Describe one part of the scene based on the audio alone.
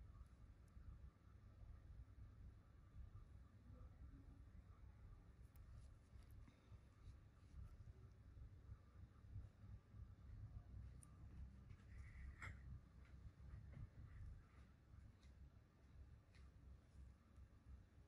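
A metal tool scrapes and clicks softly against skin.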